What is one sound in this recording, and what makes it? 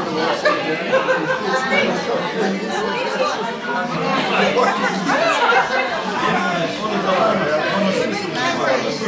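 Several people talk over one another nearby.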